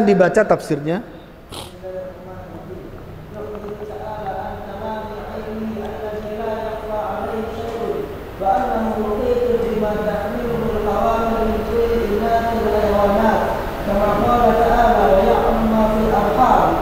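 A middle-aged man speaks calmly and steadily into a microphone.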